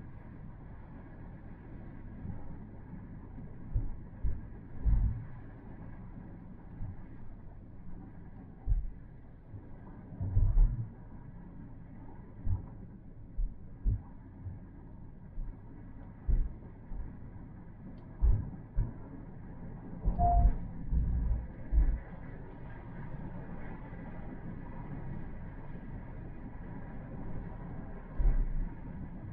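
Tyres rumble and thump on the road.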